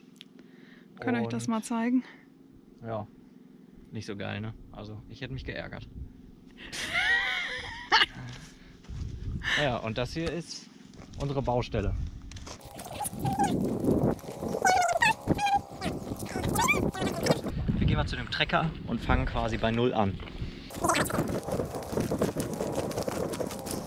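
A young man talks with animation close to a microphone, outdoors.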